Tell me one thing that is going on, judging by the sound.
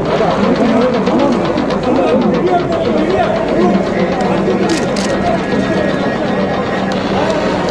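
Several men and women talk at once close by, in a lively crowd.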